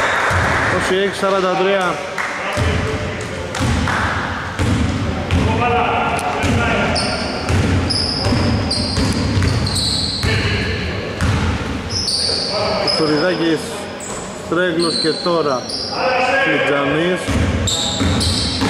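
Young men shout to each other from a distance in an echoing hall.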